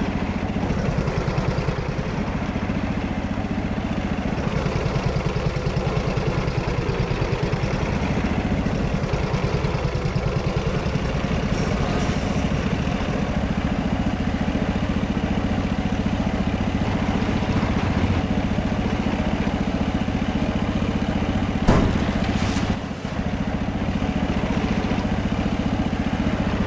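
A tank engine rumbles steadily as the tank drives along.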